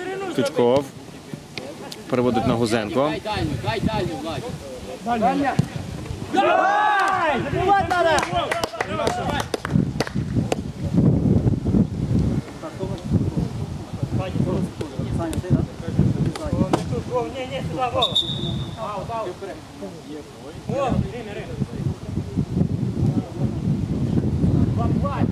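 Men shout and call to each other outdoors.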